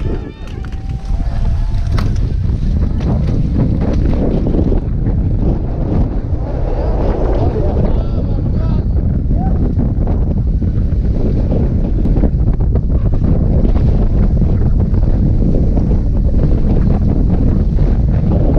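Wind roars and buffets against a microphone.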